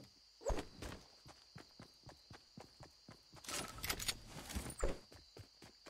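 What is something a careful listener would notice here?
Footsteps patter quickly and evenly on a hard surface.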